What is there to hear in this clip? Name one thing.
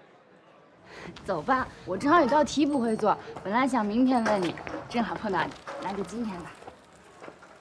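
A young woman speaks calmly and clearly nearby.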